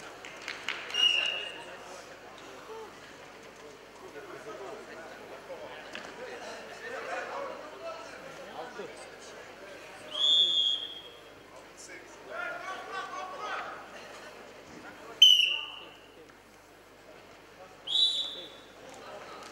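A referee blows short, shrill whistle blasts in a large echoing hall.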